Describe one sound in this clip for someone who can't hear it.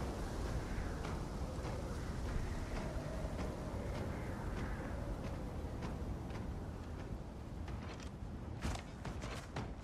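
Footsteps tap steadily on paving stones.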